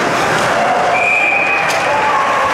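A whistle blows sharply once.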